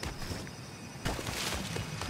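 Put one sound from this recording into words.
Leaves rustle as something pushes through dense foliage.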